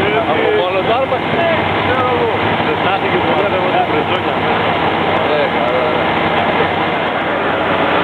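A crowd of adult men and women talks outdoors.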